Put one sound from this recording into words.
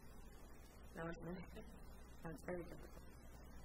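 A woman speaks briefly through a microphone.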